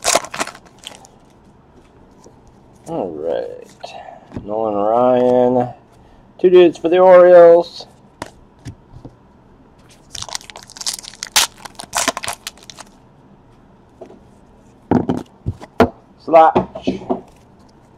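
Trading cards slide against each other as they are flipped through.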